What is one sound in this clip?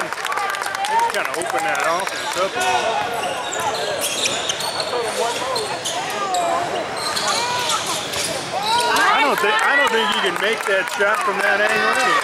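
A crowd of young spectators chatters and calls out nearby.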